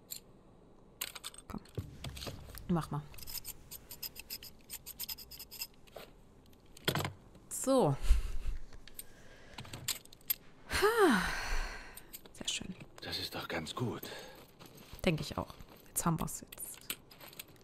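Metal parts of a revolver click and clatter as it is handled.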